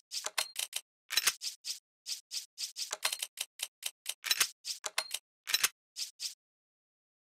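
Short menu clicks tick quickly, one after another.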